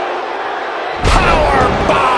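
A body slams hard onto a wrestling ring mat.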